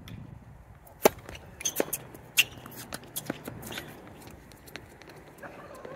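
A tennis racket strikes a ball with sharp pops.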